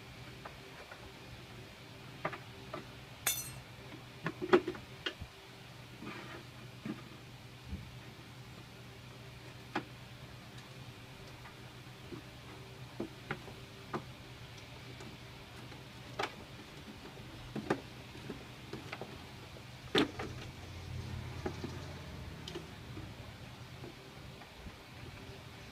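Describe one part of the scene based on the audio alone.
A plastic bottle crinkles and taps as hands handle it.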